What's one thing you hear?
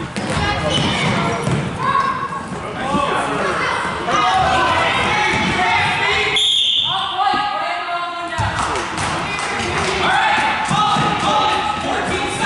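Spectators cheer and shout loudly in a large echoing hall.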